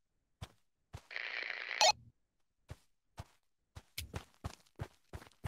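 Footsteps fall at a steady walking pace.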